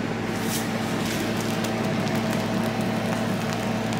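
Whipped cream squeezes out of a piping bag with a soft hiss.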